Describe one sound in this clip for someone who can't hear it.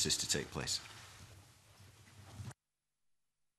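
A man speaks through a microphone in a large room.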